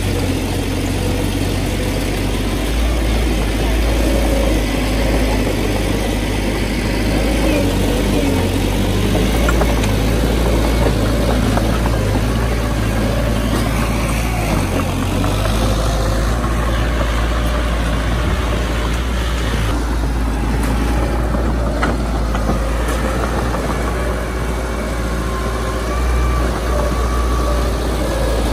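A bulldozer engine rumbles steadily.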